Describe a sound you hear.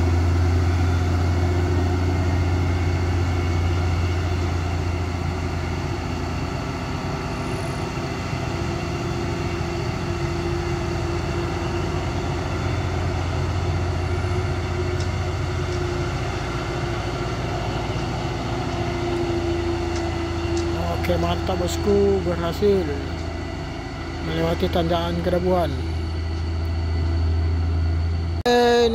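A heavy truck engine drones steadily as the truck climbs away.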